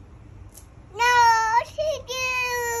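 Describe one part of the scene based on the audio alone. A young girl speaks in a high, animated voice close by.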